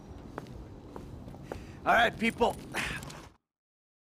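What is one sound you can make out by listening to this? Footsteps scuff on a hard gritty ground.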